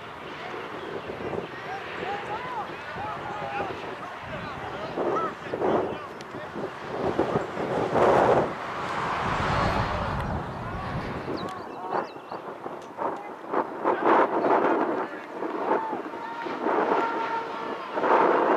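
Wind blows across an open field.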